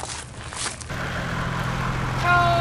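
A car engine hums as it rolls slowly.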